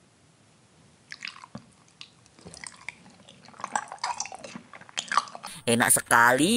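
A woman chews soft gummy candy with wet, sticky mouth sounds close to a microphone.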